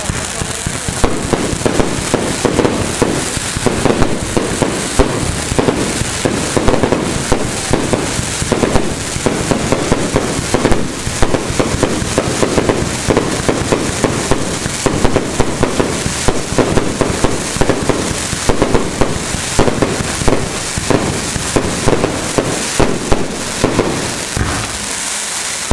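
Fireworks burst overhead with rapid loud bangs and crackles.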